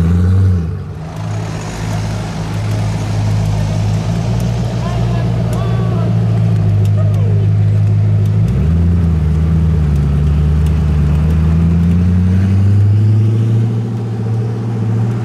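A sports car drives slowly past with a low engine drone.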